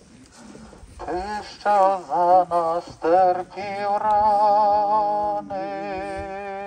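A man chants in a singing voice through a microphone and loudspeaker outdoors.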